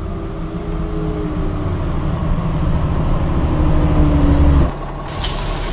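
A bus engine rumbles as the bus draws closer, growing louder.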